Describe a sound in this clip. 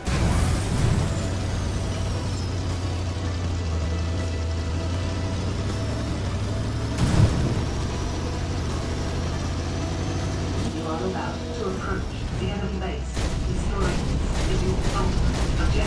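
An armoured combat vehicle's engine drones as it drives.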